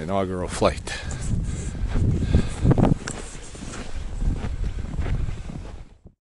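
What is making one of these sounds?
Boots crunch on snow.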